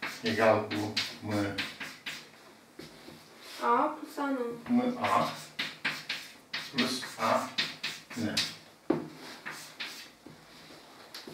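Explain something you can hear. An elderly man speaks calmly, as if explaining, close by.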